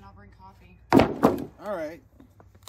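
A wooden board knocks against something hard.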